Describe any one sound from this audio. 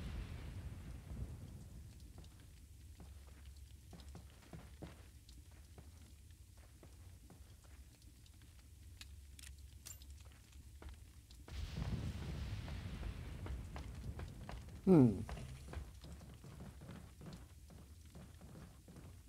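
Footsteps clatter on wooden planks and gravel.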